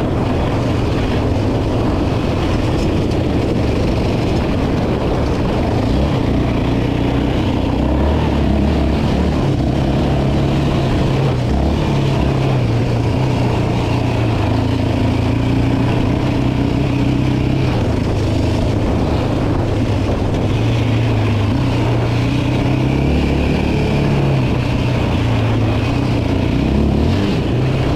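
An all-terrain vehicle engine drones and revs up and down close by.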